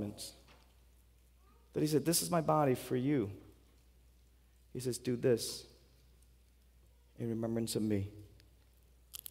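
A man speaks slowly and calmly into a microphone through loudspeakers in a large hall.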